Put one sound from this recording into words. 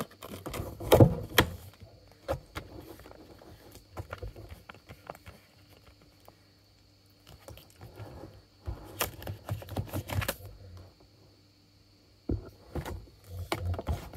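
A plastic game case clicks and rattles as it is handled.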